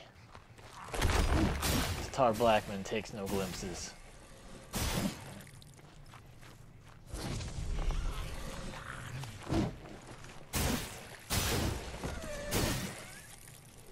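A wooden staff strikes with heavy thuds.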